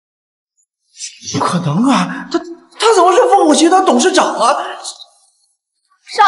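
A young man speaks in shocked disbelief, close by.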